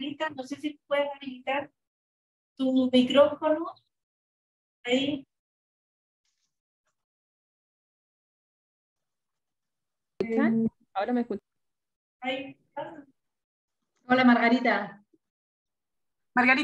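A middle-aged woman speaks calmly in short phrases over an online call, pausing often.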